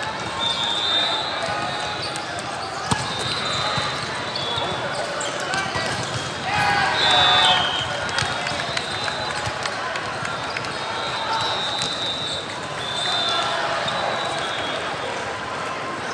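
Volleyballs thump against hands and the floor in a large echoing hall.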